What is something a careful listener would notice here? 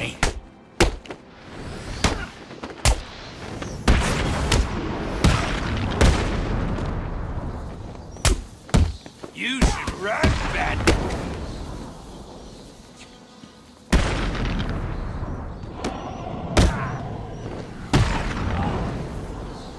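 Punches and kicks land with heavy thuds in a brawl.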